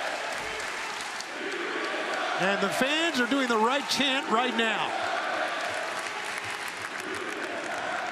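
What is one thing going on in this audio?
A large crowd cheers and murmurs in a big echoing arena.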